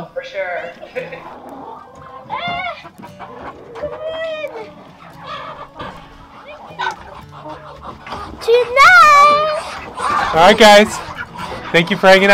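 Hens cluck and squawk nearby.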